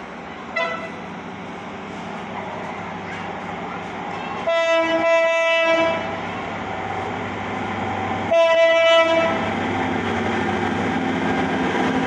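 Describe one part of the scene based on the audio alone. A train rumbles closer along the tracks.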